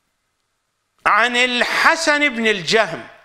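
An older man reads aloud into a microphone in a slow, chanting voice.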